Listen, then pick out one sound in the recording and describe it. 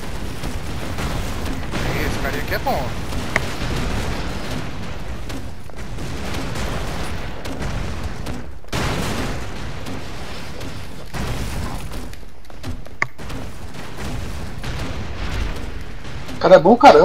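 Video game explosions boom and crackle repeatedly.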